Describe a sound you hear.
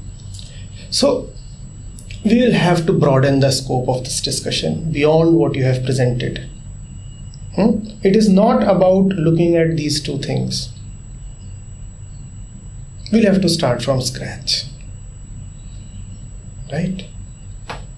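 A man speaks calmly and thoughtfully, close by.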